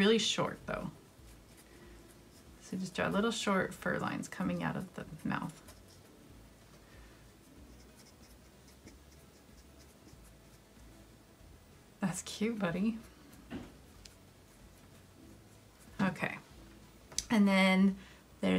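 A felt marker squeaks and scratches on paper.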